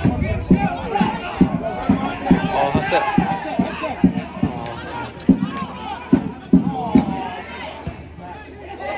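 Spectators nearby chat and call out.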